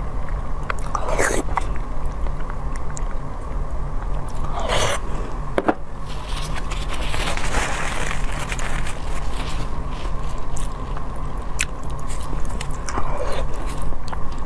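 A young woman slurps noodles close to a microphone.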